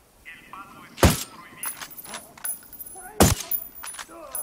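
A rifle fires two single shots.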